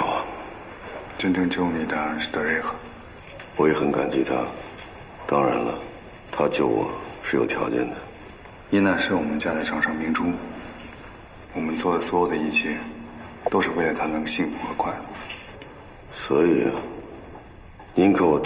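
A second man answers in a low, calm voice close by.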